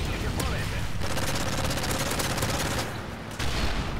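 Rapid gunfire rattles from a rifle.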